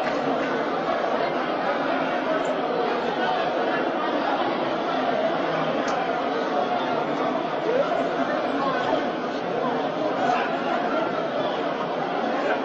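A crowd of men shouts and clamours loudly in an echoing hall.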